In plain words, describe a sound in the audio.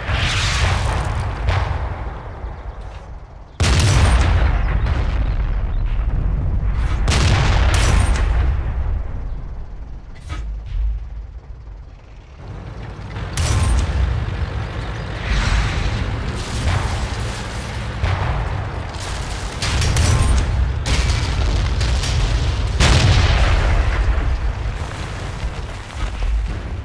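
A tank engine rumbles deeply and steadily.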